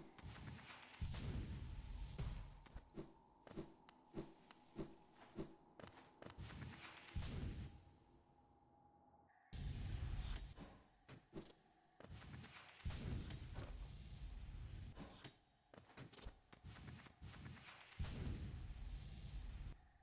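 A game character dashes with soft whooshes.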